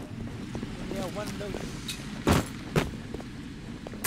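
A wrench strikes a wooden crate with sharp knocks.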